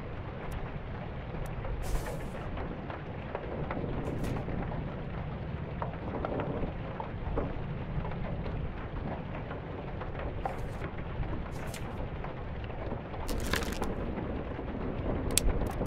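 Paper pages of a book turn with a soft rustle.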